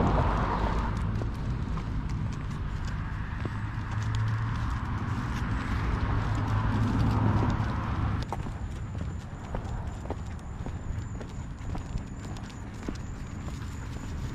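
Footsteps patter along a pavement.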